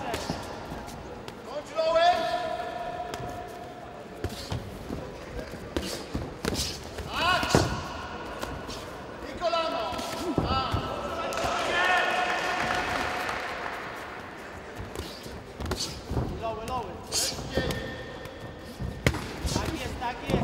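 Gloves thud against bodies and guards in quick bursts.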